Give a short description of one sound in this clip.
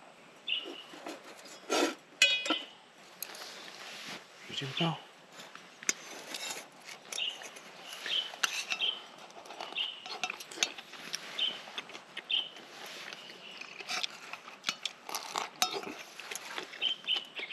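Bread sizzles softly in a hot pan.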